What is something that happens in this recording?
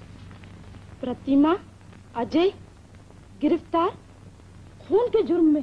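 A young woman speaks in short, animated bursts.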